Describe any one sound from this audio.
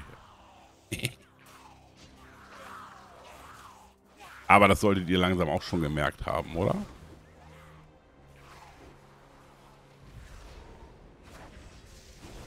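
Magical combat effects whoosh and crackle.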